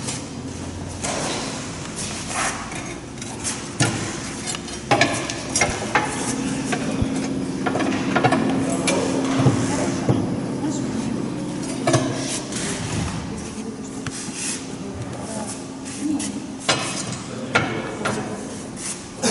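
A man talks calmly, close by, in a room with some echo.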